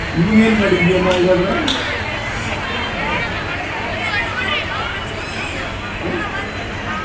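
An elderly man speaks into a microphone through a loudspeaker, loudly and with emphasis, outdoors.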